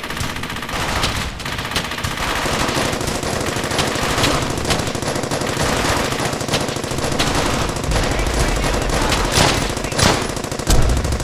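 Rifle shots crack repeatedly at close range.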